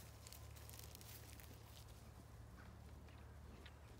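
A small dog's paws patter quickly across grass.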